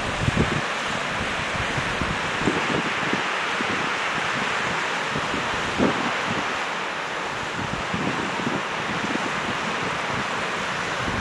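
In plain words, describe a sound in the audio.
A river rushes over rocks in a steady roar.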